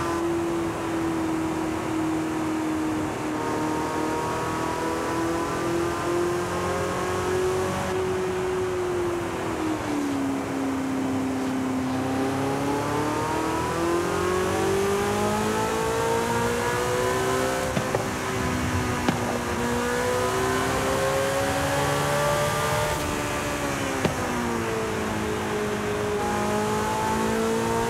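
A sports car engine roars, rising and falling in pitch as the car speeds up and slows down.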